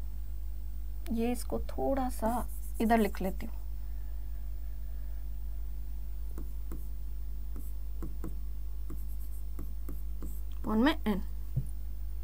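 A young woman speaks calmly into a close microphone, in short bursts.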